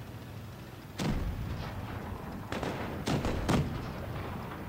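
Tank guns fire with loud booming blasts.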